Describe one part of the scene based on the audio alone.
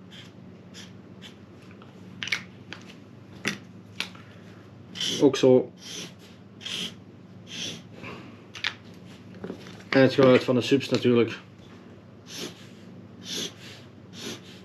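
A felt-tip marker squeaks and scratches across paper in short strokes.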